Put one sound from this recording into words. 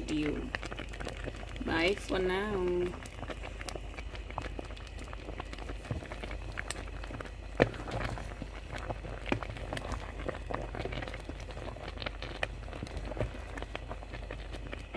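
A thick stew bubbles and pops as it simmers.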